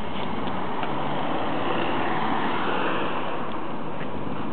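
A car drives past.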